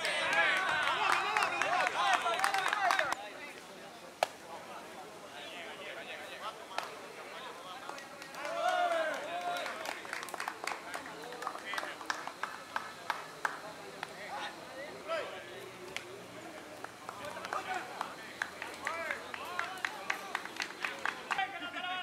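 Spectators shout and cheer outdoors at a distance.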